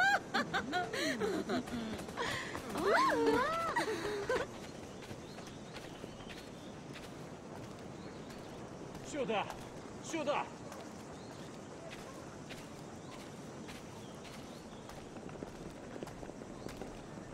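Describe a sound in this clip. Footsteps walk along a paved street.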